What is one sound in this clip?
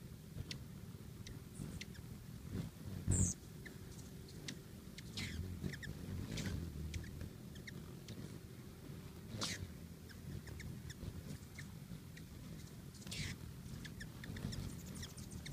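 A light wind rumbles outdoors.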